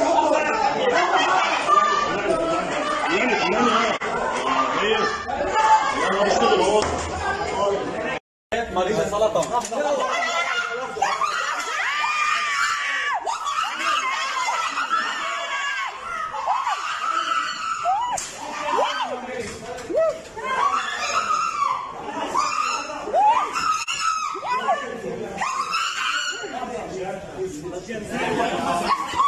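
Several people shout and talk over one another in an echoing room.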